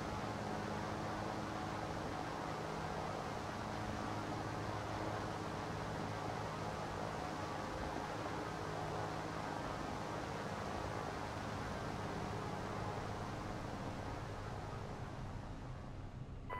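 Twin propeller engines drone steadily.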